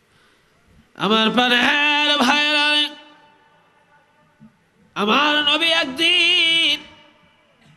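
An elderly man chants in long, drawn-out phrases through a loud microphone.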